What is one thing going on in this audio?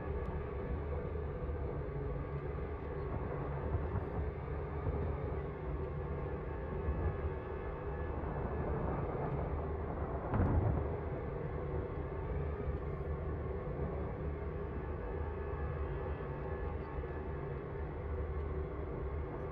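A spaceship engine hums low and steady.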